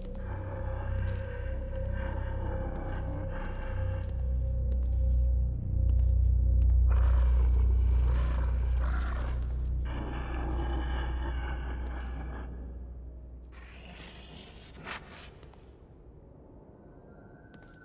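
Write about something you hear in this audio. Soft footsteps creep slowly across a hard floor.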